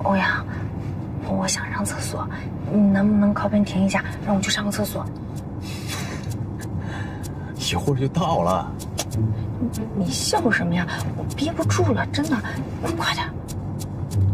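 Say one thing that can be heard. A young woman speaks pleadingly at close range.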